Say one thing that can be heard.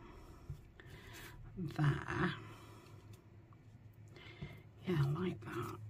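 Paper rustles and crinkles softly under hands.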